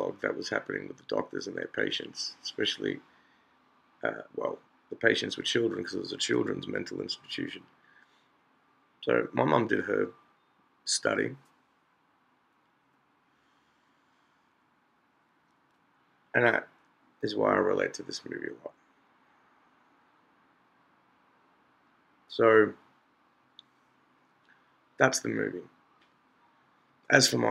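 A middle-aged man talks calmly and closely into a microphone, in bursts with pauses.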